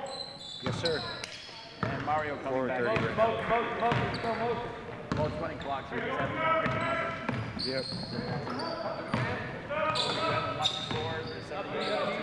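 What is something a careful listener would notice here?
Several young men shout and call out nearby.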